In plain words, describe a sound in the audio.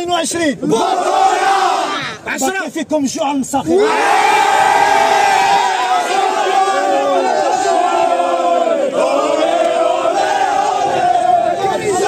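A man shouts with excitement close by.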